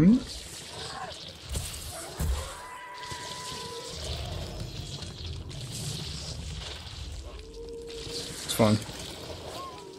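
A creature lets out a harsh, rising shriek.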